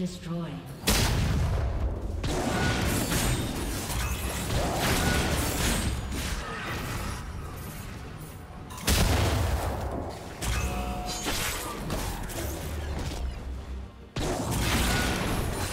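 Game spells crackle and burst in a fast fight.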